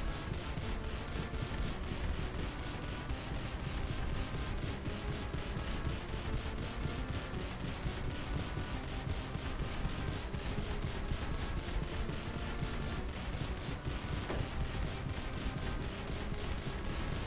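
Game music plays with a steady, quick beat.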